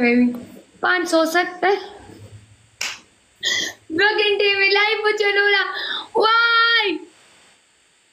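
A young woman talks with animation over an online call.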